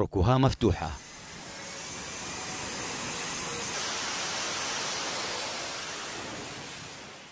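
A jet engine roars loudly and steadily, with a rushing hiss.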